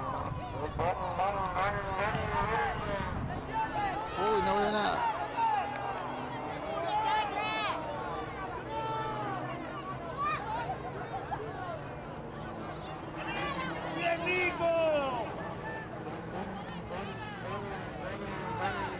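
A crowd of young spectators shouts and cheers loudly outdoors.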